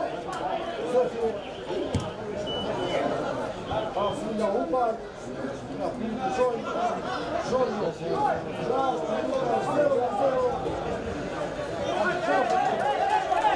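A crowd of spectators chatters and calls out in the open air.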